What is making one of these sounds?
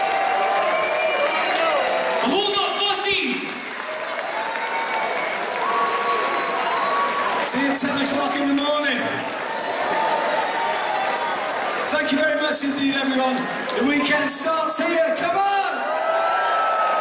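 A man sings through loudspeakers.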